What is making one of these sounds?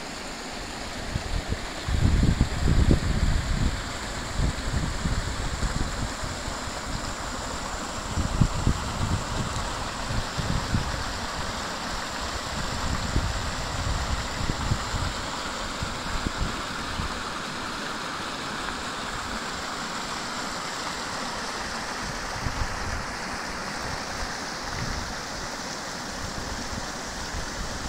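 Shallow water flows and babbles over stones.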